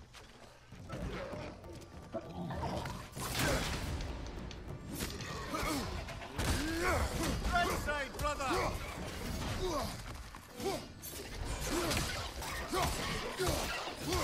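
Heavy blows thud and clash in a fight.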